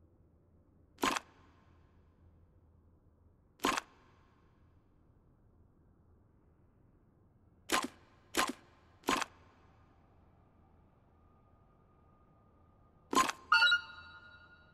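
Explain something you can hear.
Puzzle pieces click sharply as they turn into place, a few times.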